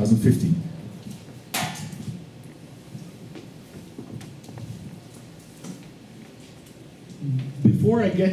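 A man speaks calmly into a microphone, heard through a loudspeaker in an echoing room.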